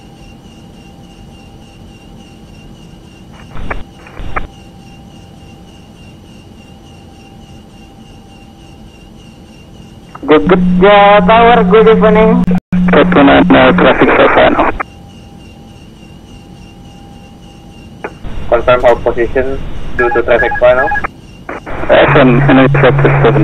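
Jet engines hum steadily.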